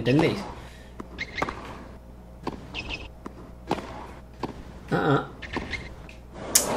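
A tennis ball is struck with a racket, hit after hit.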